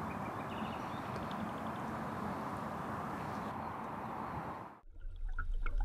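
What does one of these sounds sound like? Wind blows steadily outdoors by open water.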